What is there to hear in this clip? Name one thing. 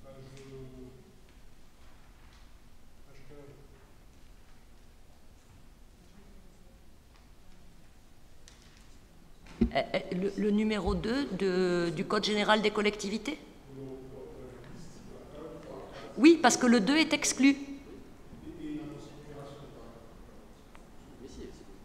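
A woman speaks steadily into a microphone, at times louder and with animation.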